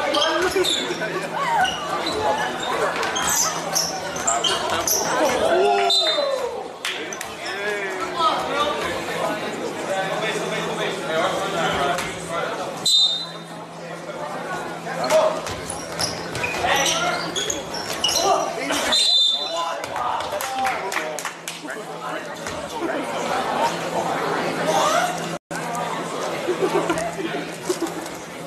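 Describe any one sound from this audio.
Players and spectators talk and shout in a large echoing gym.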